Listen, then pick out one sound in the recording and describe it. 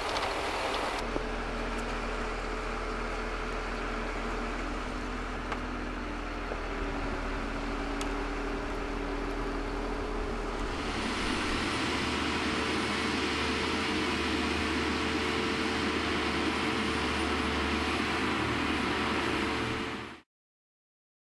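A heavy tracked vehicle's diesel engine rumbles steadily.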